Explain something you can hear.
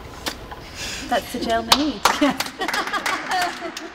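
Young women chat and laugh in a group nearby.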